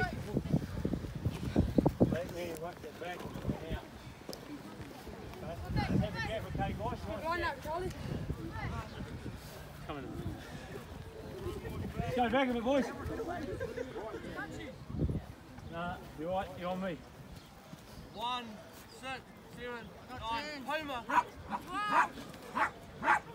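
Teenage boys talk and call out to each other nearby.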